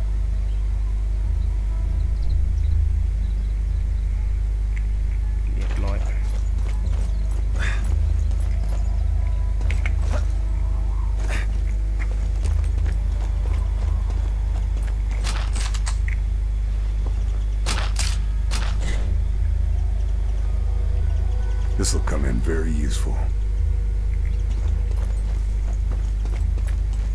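Footsteps clatter on roof tiles and then on stone paving.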